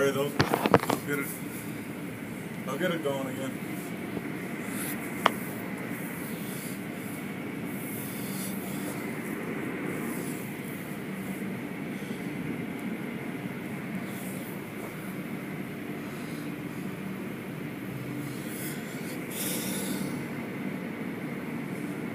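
Water sprays and splashes steadily against a car.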